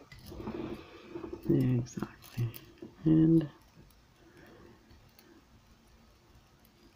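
A small metal chain clinks softly.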